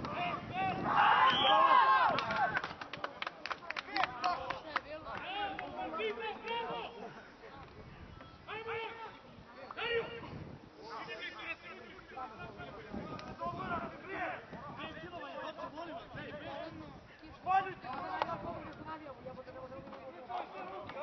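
Men shout and call out to each other on an open field outdoors.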